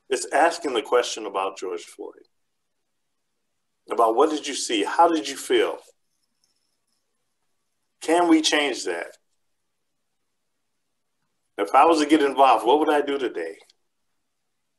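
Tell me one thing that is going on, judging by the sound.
A man speaks with animation over an online call, in short bursts with pauses.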